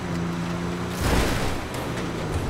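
A vehicle thumps hard over rough ground.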